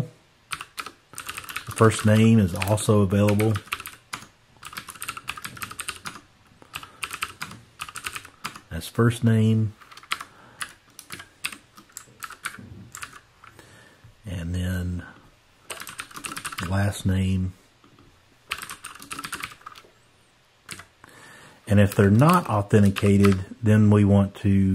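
Computer keys click rapidly as someone types.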